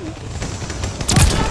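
A large explosion booms nearby.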